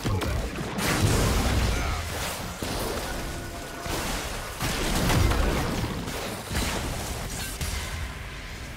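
Spells crackle and boom in a busy fantasy game battle.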